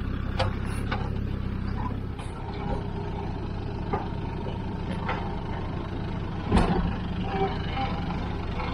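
An off-road vehicle's engine rumbles low and steady.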